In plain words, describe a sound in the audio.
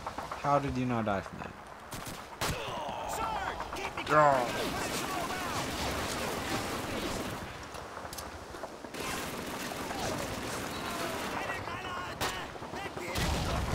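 A pistol fires sharp single shots.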